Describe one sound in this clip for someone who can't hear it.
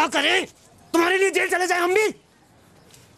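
A young man shouts angrily, close by.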